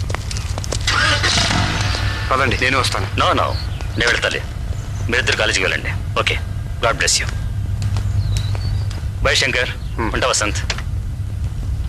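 Men talk with animation close by.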